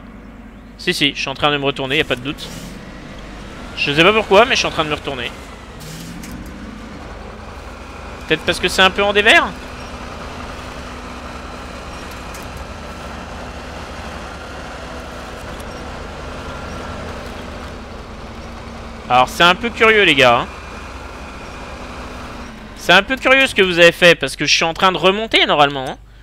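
A vehicle engine idles with a low, steady hum.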